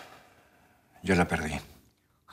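A man speaks quietly and tensely, close by.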